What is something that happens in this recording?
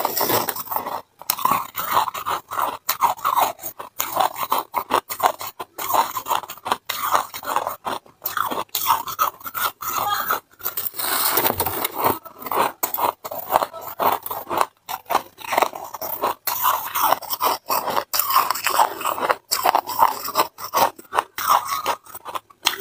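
A young woman crunches and chews ice close to a microphone.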